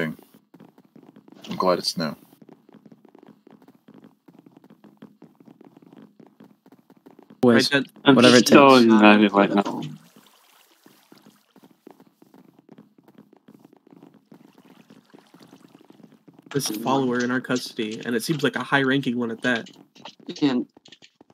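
Footsteps tap softly on wooden boards.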